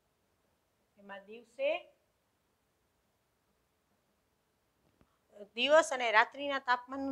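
A woman speaks clearly and calmly.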